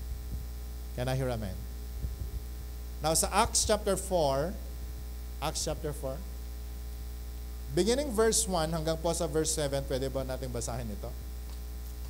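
A middle-aged man speaks with animation through a microphone, in bursts with pauses.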